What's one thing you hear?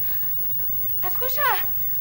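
A woman exclaims in alarm close by.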